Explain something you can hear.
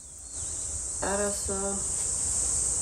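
A middle-aged woman talks quietly on a phone.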